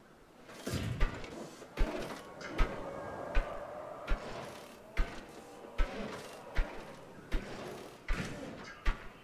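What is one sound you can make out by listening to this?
Fence posts thud into place one after another in a steady rhythm.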